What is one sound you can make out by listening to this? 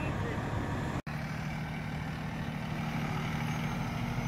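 A diesel rescue truck rumbles as it turns.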